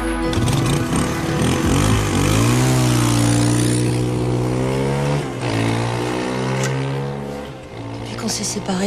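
A motorcycle engine revs and roars past.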